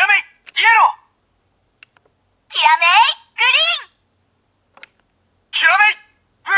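A toy's electronic voice calls out loudly through a small speaker in short bursts.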